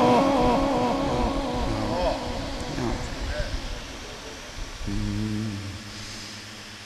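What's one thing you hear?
A man chants in a drawn-out, melodic voice through a microphone with echo.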